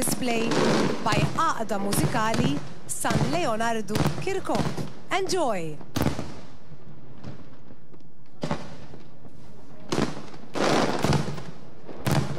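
Fireworks bang and boom loudly overhead.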